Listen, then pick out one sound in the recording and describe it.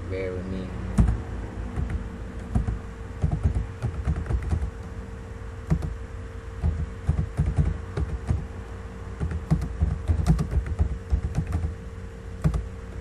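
Keys on a keyboard click rapidly as someone types.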